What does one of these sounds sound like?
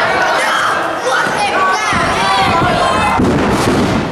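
A body slams onto a wrestling ring mat with a loud thud.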